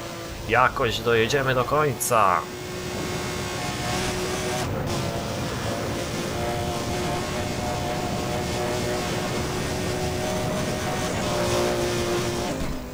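A sports car engine roars steadily at high speed.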